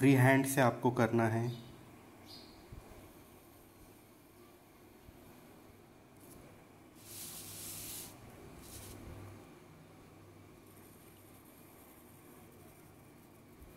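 A pencil scratches lines on paper.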